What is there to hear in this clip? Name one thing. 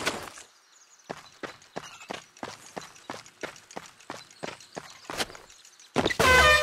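Quick footsteps patter on hollow wooden planks.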